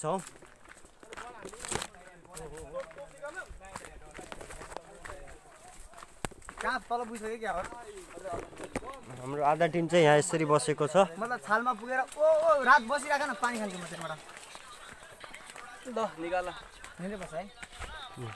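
Footsteps crunch on a dry dirt trail.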